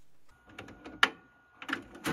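A button clicks.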